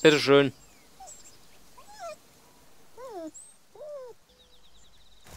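A small animal squeaks in short, high chirps.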